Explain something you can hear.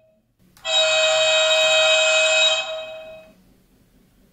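A model diesel locomotive's speaker sounds a high horn blast.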